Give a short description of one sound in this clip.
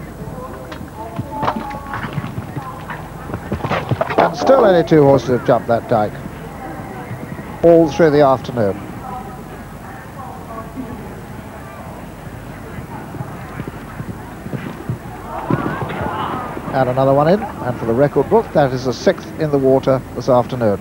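A horse's hooves thud on grass.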